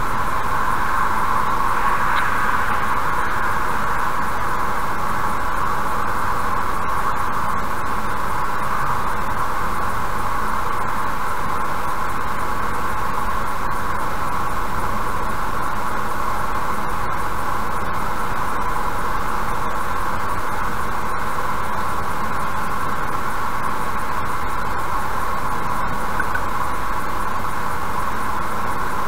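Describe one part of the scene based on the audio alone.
A car engine drones steadily.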